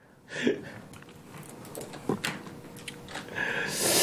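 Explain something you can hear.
A young man laughs into a headset microphone.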